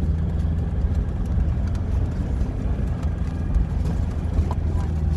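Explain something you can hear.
A vehicle's engine rumbles steadily from inside the cab.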